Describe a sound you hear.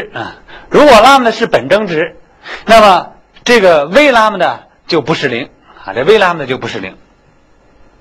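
A man lectures with animation, close by.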